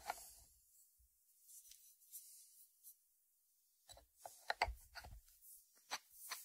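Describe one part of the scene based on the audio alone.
A ceramic lid is lifted off a dish and set back on it.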